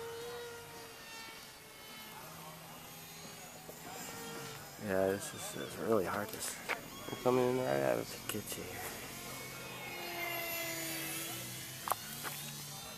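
A radio-controlled model jet whines as it flies past.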